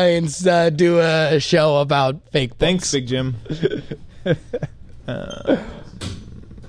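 A man laughs loudly into a microphone, close by.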